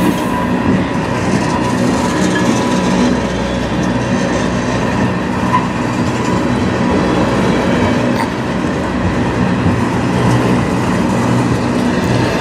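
Freight train cars rumble and clatter steadily past, close by.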